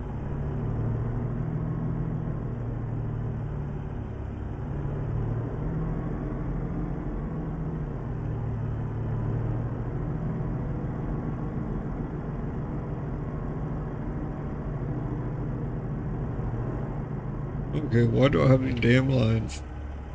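A truck engine rumbles steadily as it drives slowly.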